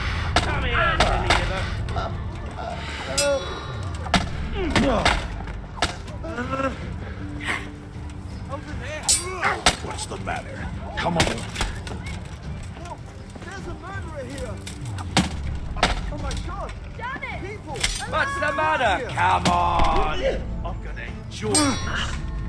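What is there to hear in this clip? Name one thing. Steel swords clash and clang in a fight.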